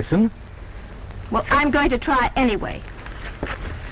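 A man speaks tensely, slightly muffled as on an old recording.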